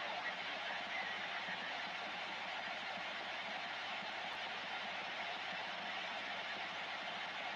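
A radio speaker hisses with steady static.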